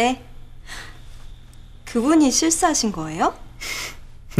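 A young woman speaks cheerfully and close by.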